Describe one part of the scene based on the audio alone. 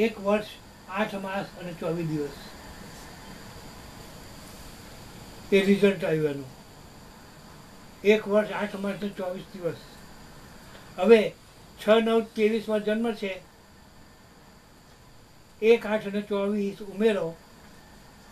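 An elderly man speaks close by in short bursts with pauses.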